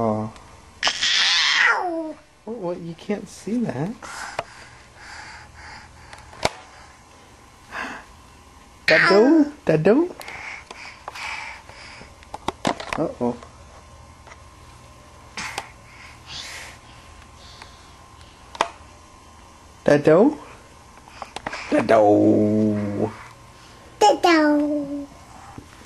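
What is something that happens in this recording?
A toddler squeals and babbles loudly, close by.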